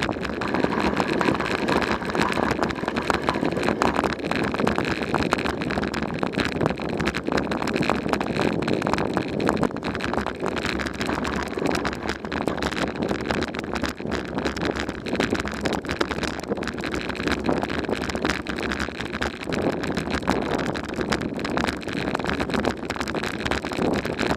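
Tyres crunch steadily over a dirt and gravel road.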